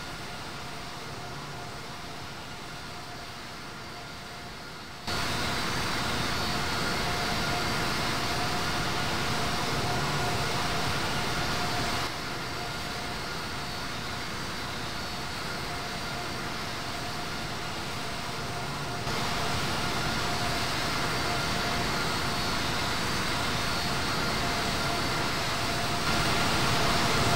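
Jet engines roar steadily, with the level jumping in sudden steps.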